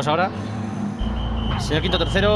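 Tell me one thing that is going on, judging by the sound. A racing car engine revs up as the car pulls away.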